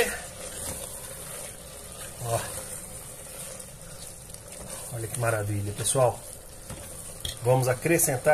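A spatula stirs and scrapes food in a metal pot.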